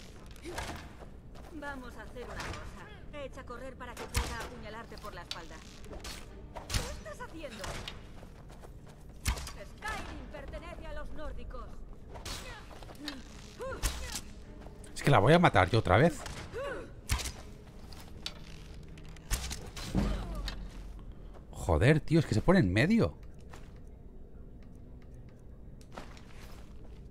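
A bowstring snaps as arrows are loosed.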